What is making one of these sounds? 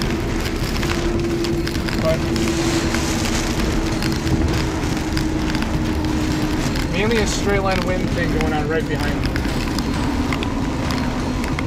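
Heavy rain pounds on a car windshield.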